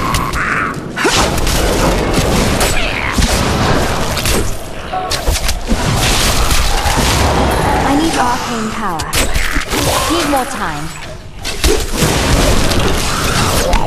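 Skeletons clatter and break apart as they fall.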